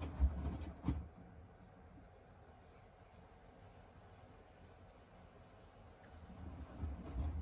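A washing machine motor hums quietly.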